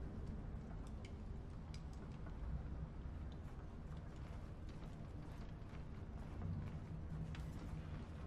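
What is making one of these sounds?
Footsteps tread slowly across a hard floor.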